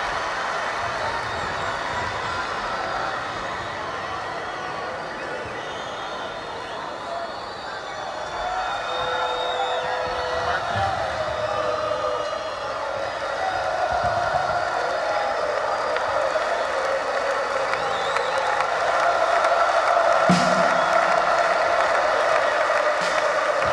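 An amplified guitar plays chords.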